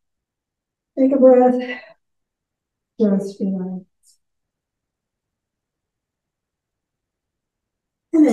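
An older woman speaks calmly in short phrases.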